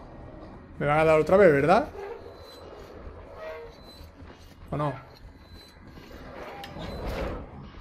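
A metal valve wheel creaks as it turns.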